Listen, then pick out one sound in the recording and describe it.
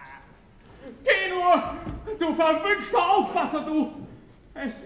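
A man sings loudly in an operatic voice.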